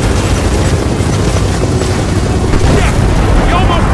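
An explosion booms as a helicopter is hit.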